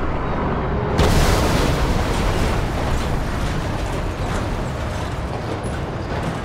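Steam bursts out and hisses loudly.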